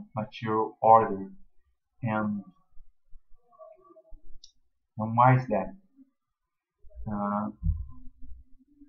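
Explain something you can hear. A young man speaks casually into a computer microphone, in short bursts.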